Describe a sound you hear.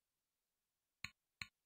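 Game buttons click twice in quick succession.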